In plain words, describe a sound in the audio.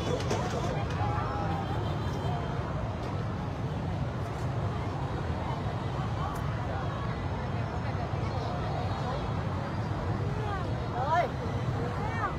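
A large outdoor crowd chatters steadily all around.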